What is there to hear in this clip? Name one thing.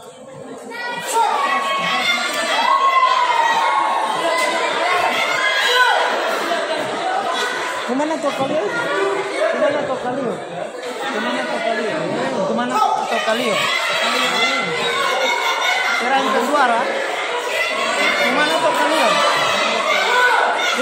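A crowd of children cheers and shouts loudly in an echoing hall.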